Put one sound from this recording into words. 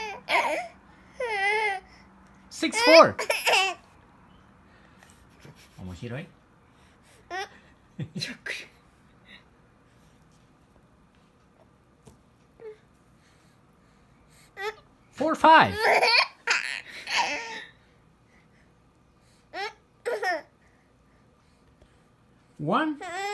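A baby babbles and squeals in short bursts nearby.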